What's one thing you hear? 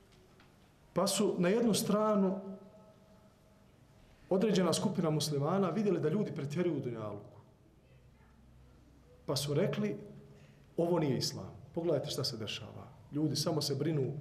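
A man speaks calmly into a close microphone, in bursts with pauses.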